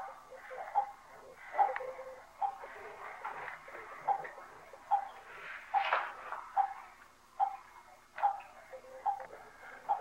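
A toddler babbles softly close by.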